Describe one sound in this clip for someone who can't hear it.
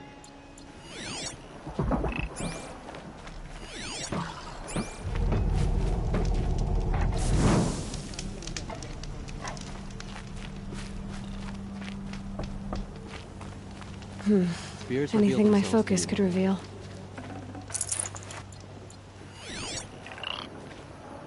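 An electronic scanner pulses with a shimmering sweep.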